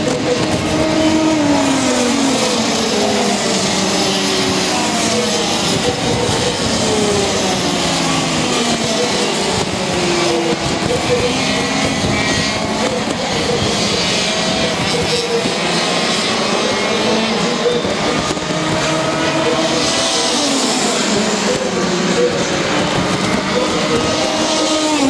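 Kart engines whine and buzz, rising and falling in pitch as the karts race past.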